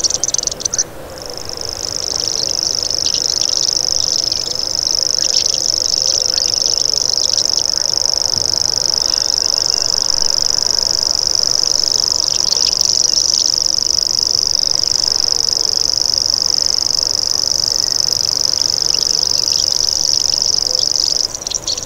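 A small bird sings a high, dry, insect-like reeling trill that goes on and on without a break.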